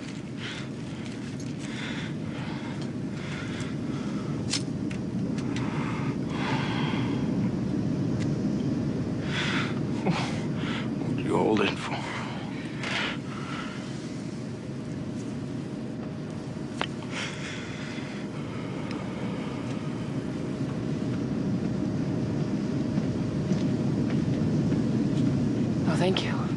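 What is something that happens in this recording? A low engine rumble drones steadily.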